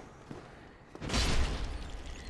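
A sword strikes with a sharp clang.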